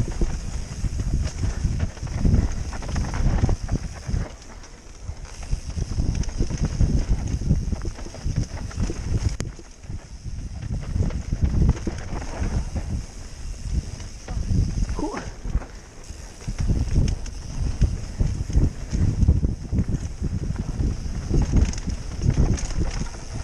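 Wind buffets a microphone, roaring up close.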